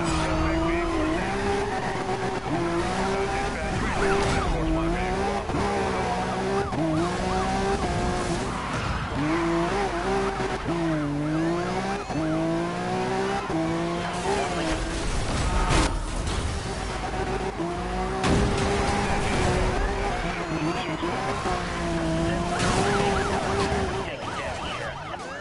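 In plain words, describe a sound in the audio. A sports car engine roars and revs up and down at high speed.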